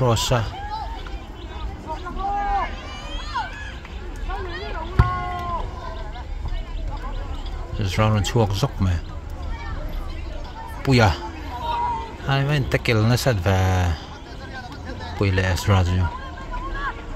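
Young boys shout to each other on an open field.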